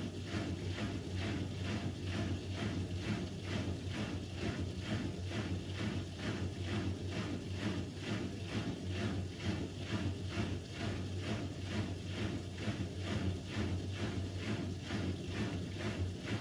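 Water sloshes rhythmically inside a washing machine.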